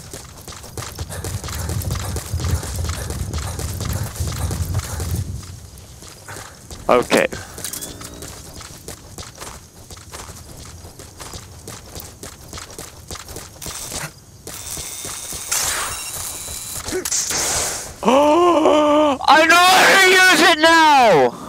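Footsteps crunch through dry grass and dirt.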